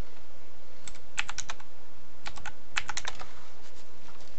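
Short electronic blips tick as a menu is browsed.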